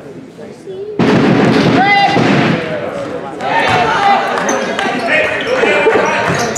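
Spectators cheer loudly.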